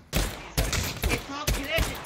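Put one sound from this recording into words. A pistol fires a shot.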